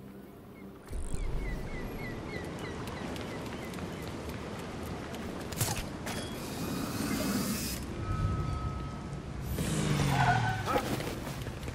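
Footsteps run quickly over wet pavement.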